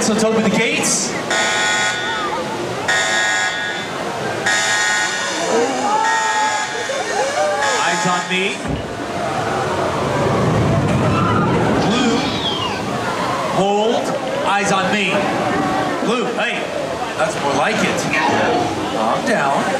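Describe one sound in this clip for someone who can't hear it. A dinosaur puppet shrieks loudly.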